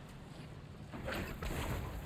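A magic spell crackles and bursts with a fiery whoosh.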